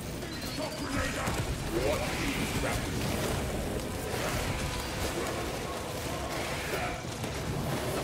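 Fiery explosions burst and crackle.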